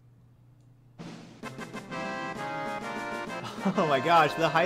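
A bright electronic jingle plays for an alert.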